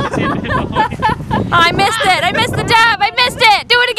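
A young woman shouts and laughs loudly close by.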